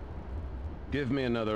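An elderly man speaks calmly through a loudspeaker.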